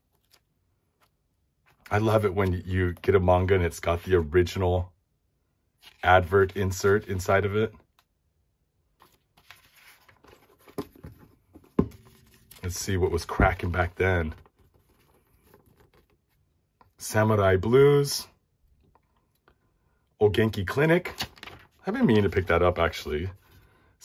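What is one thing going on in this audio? Paper rustles and crinkles as pages and a leaflet are handled.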